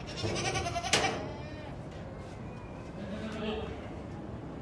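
Goats bleat nearby.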